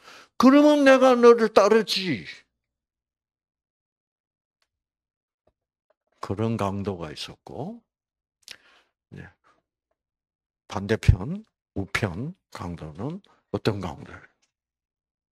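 An elderly man speaks with animation into a microphone, in bursts with pauses.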